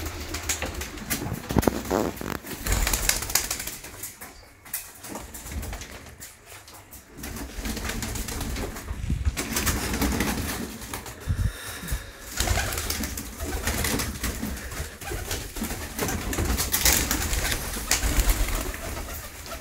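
A pigeon flaps its wings loudly.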